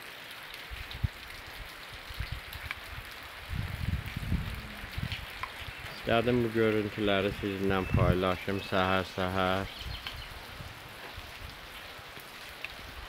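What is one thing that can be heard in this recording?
Wind gusts through leafy trees outdoors.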